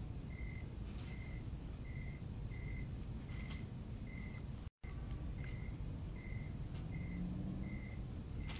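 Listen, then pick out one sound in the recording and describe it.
A small animal rustles in dry leaves and debris.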